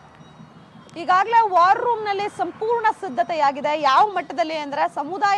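A young woman speaks steadily into a microphone outdoors.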